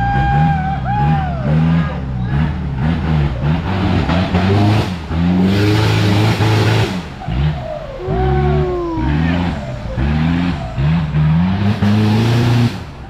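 A truck engine revs hard and labours repeatedly, loud and close.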